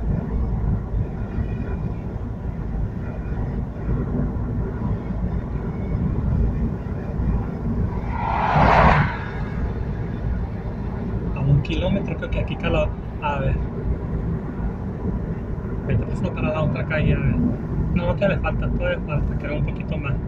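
A car engine hums with steady road rumble from inside the car.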